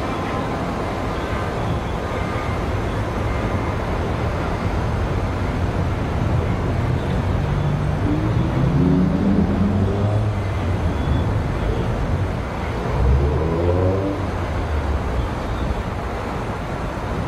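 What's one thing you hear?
Cars drive across bumpy railway tracks one after another.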